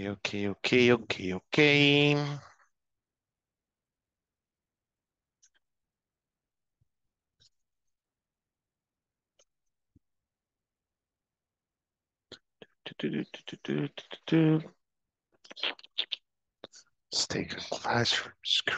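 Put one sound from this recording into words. A man speaks clearly into a headset microphone over an online call, with a long pause.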